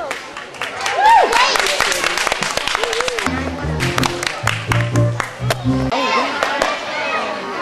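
A crowd applauds and cheers after a gymnast lands.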